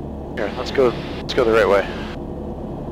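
A middle-aged man speaks briefly through a headset microphone.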